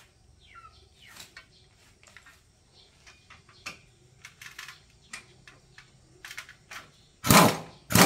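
Metal tools clink and tap against motorcycle parts.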